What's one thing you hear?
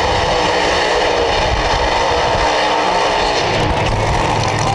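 Tyres screech and squeal as a race car spins its wheels on the spot.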